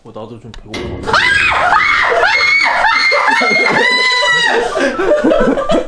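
A young man shouts loudly in a playful scare.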